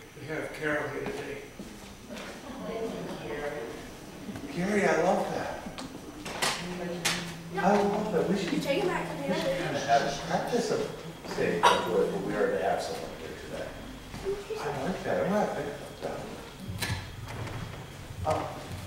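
A man speaks with animation in a large echoing room.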